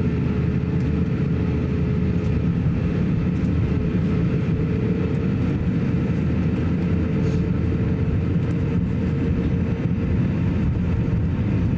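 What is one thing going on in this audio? Jet engines hum steadily inside an airliner cabin as it taxis.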